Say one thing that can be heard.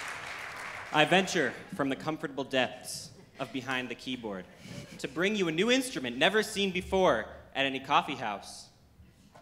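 A young man speaks into a microphone in a large echoing hall.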